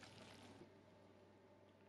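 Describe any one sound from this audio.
Tongs toss wet noodles in a glass bowl.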